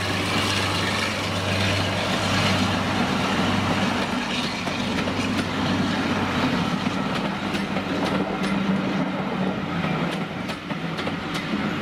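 Passenger coach wheels clatter over rail joints as the train rolls past.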